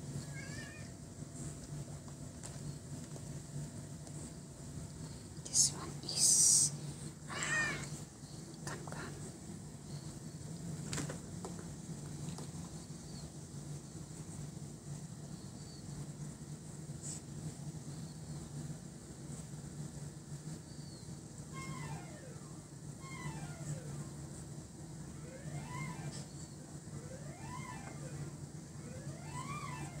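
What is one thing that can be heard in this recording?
A cat purrs steadily close by.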